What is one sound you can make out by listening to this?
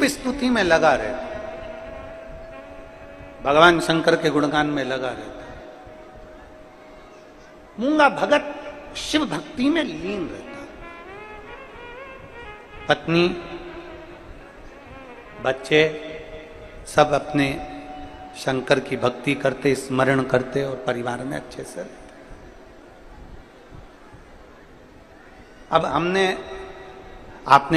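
A middle-aged man sings and preaches with animation into a microphone, with echo over a large space.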